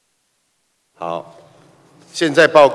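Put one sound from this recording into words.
A middle-aged man speaks formally into a microphone in a large hall.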